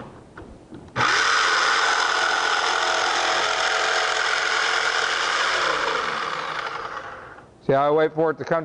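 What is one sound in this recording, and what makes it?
A power jigsaw buzzes steadily as it cuts.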